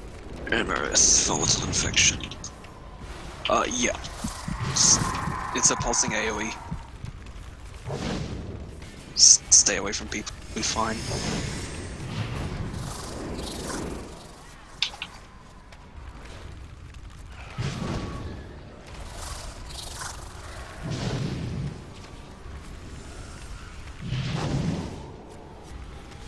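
Magic spells whoosh and burst in short bursts during a video game battle.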